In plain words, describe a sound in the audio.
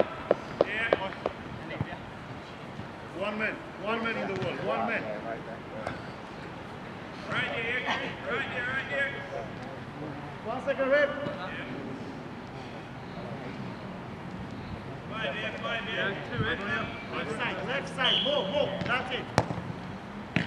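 A football thuds as it is kicked.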